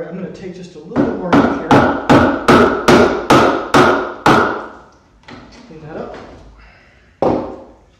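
A wooden mallet strikes a chisel in a quick run of sharp knocks.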